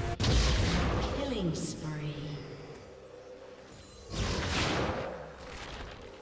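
Game spell effects whoosh and crackle in short bursts.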